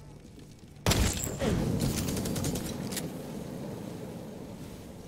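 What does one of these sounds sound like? A sudden blast bursts out, then a flamethrower roars loudly and dies away.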